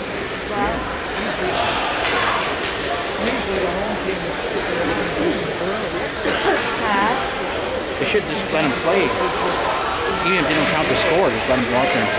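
A crowd of young players chatters and calls out in a large echoing rink.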